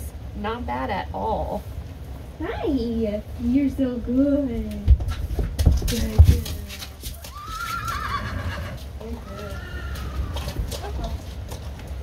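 A young woman talks brightly close by.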